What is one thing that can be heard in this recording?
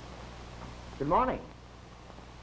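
A man gives a short, rising exclamation.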